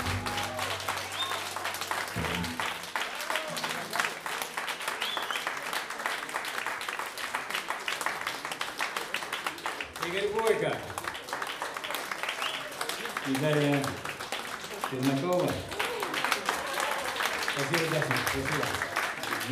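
Two electric guitars play lively jazz.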